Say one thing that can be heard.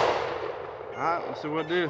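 A man speaks casually close by.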